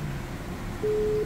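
A dial tone sounds through a car stereo as a call is placed.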